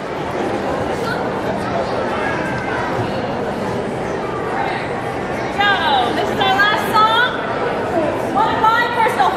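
A choir of children and teenagers sings together in a large echoing hall.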